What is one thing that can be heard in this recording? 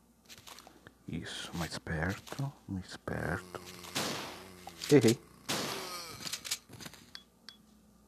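A zombie groans and snarls while biting.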